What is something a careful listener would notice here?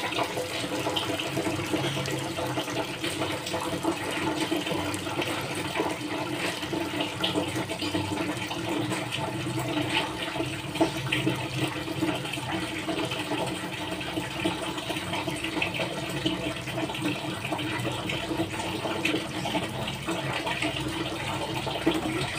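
Wet cloth swishes and splashes in a basin of water.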